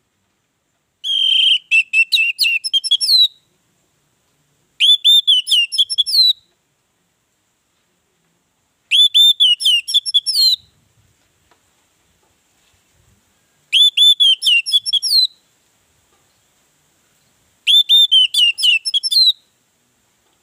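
An orange-headed thrush sings in short, rich bursts of song.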